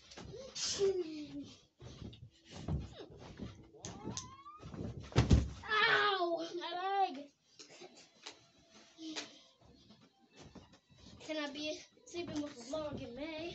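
A boy jumps on a bed with soft thumps and creaks.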